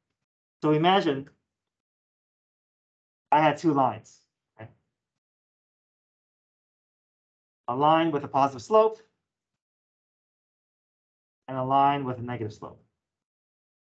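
A young man speaks calmly in short phrases through an online call.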